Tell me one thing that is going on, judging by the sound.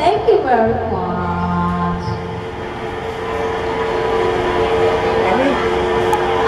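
A woman sings loudly into a microphone, amplified through a loudspeaker.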